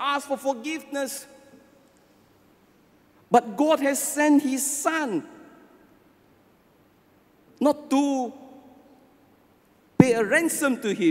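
An elderly man speaks with animation into a microphone, in phrases separated by pauses, in a reverberant hall.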